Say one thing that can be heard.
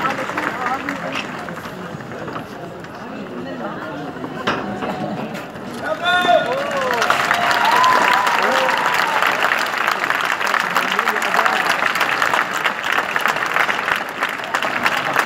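A crowd of men and women chatter and cheer.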